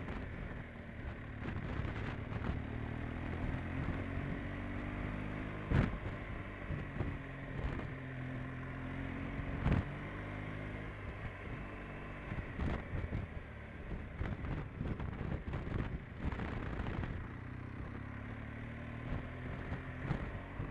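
A motorcycle engine hums steadily, rising and falling in pitch as the rider shifts.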